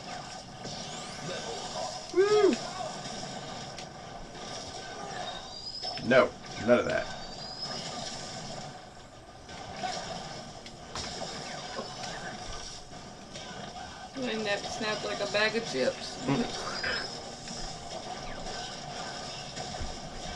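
Video game blasts and zaps sound in quick bursts.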